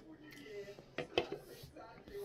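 A can clinks down on a hard counter.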